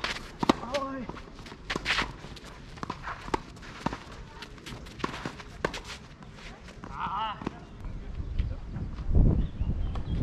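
Tennis shoes scuff and slide on a clay court.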